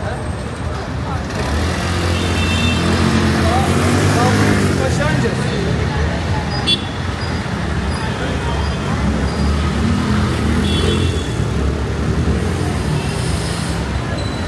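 Traffic rumbles steadily outdoors.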